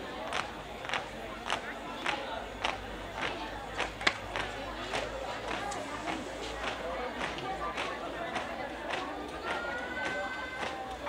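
Boots stamp on hard ground in a steady marching rhythm, outdoors.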